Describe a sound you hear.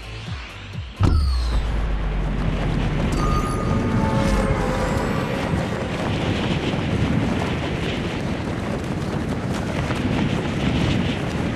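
Wind rushes loudly past in a fast fall.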